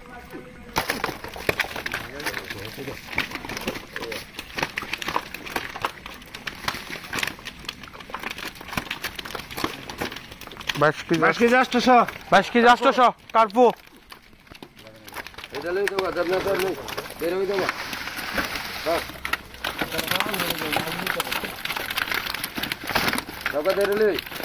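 Fish and plastic crates thump and rustle as they are handled.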